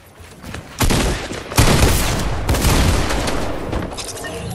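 Loud blasts and crackling bursts ring out in quick succession.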